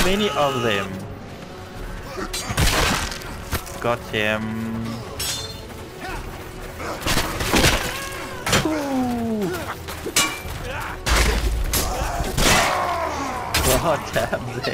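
Metal weapons clash and thud in a melee fight.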